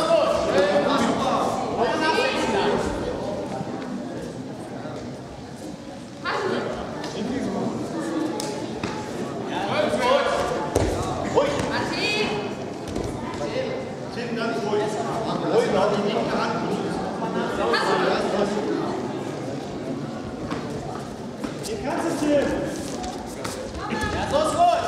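Spectators shout encouragement in a large echoing hall.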